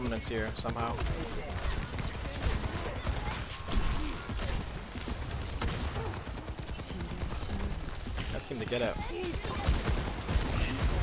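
Gunfire from a video game rattles rapidly.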